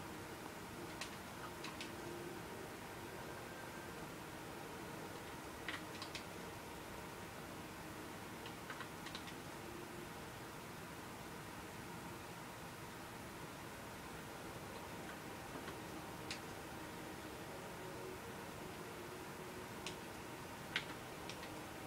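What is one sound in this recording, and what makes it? Soft game menu clicks sound as selections change.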